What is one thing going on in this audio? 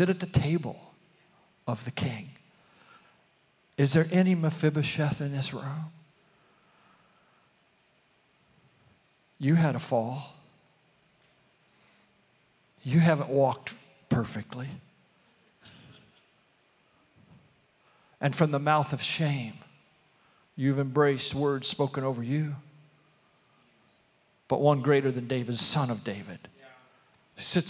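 An elderly man speaks calmly into a microphone, with pauses between phrases.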